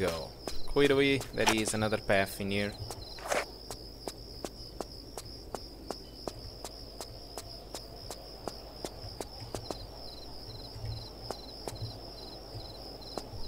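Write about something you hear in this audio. Footsteps patter quickly on stone, echoing in a narrow passage.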